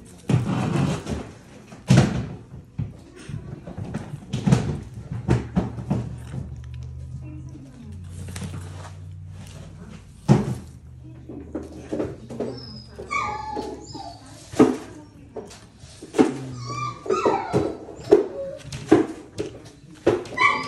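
A young man chews food with loud crunching and smacking close up.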